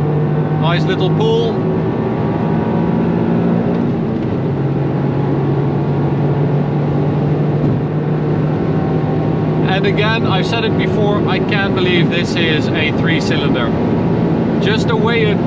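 A car engine drones loudly at high speed.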